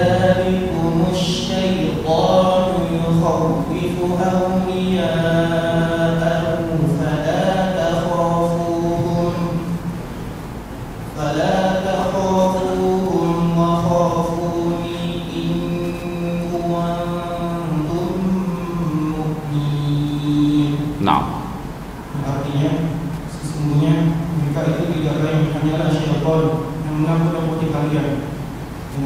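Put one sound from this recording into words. A man chants in a melodic voice through a microphone in an echoing room.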